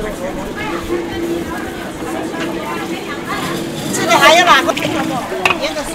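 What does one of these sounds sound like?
A metal ladle scrapes and stirs in a pan of bubbling oil.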